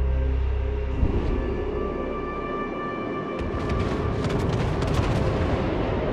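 A warship's big guns fire with heavy booms.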